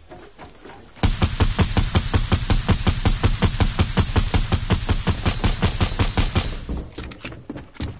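A rifle fires rapidly in a long burst of shots.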